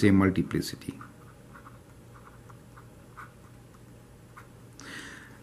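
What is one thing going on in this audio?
A marker squeaks and scratches softly on paper.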